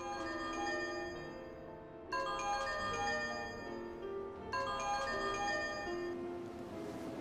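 A phone ringtone plays a repeating melody.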